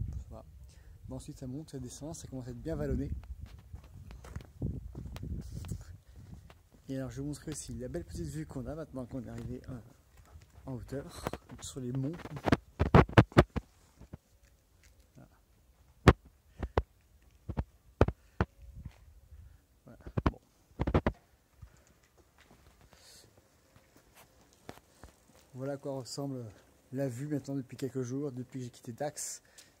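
A young man talks calmly and close to a clip-on microphone, outdoors.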